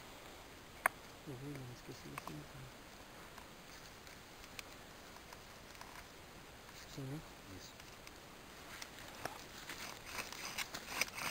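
Twigs and leaf litter rustle and snap under hands.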